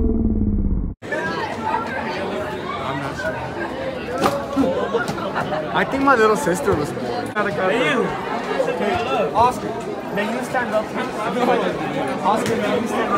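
Many teenagers talk and laugh loudly all at once, close by.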